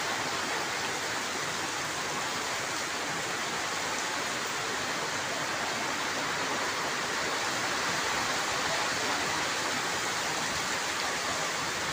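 Heavy rain pours down outdoors and drums on a canopy.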